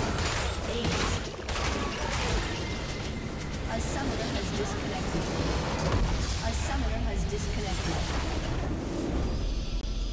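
Spell blasts and hits crackle in a fantasy battle game.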